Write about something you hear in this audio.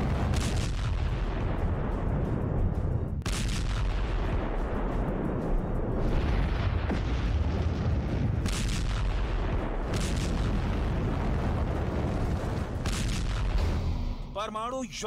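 A huge explosion rumbles deeply and steadily.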